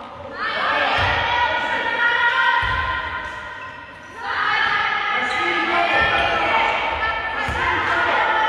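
A handball bounces on a wooden floor.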